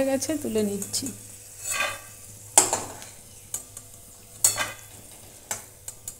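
Peanuts clatter onto a metal plate.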